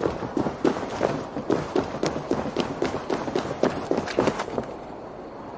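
Footsteps thud quickly on stone steps.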